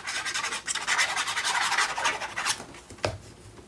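A glue bottle sputters and squirts in short wet bursts.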